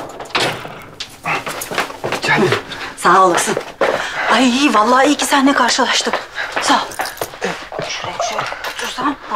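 A woman talks loudly and with animation close by.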